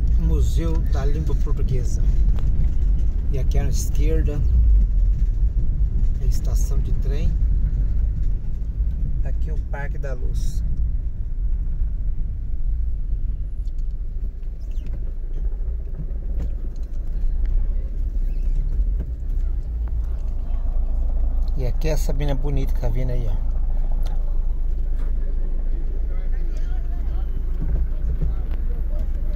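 A car engine rumbles steadily from inside a moving car.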